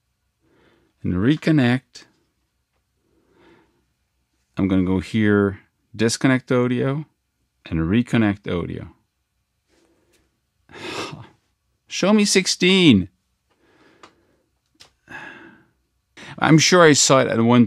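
A middle-aged man speaks casually into a close microphone, in short bursts.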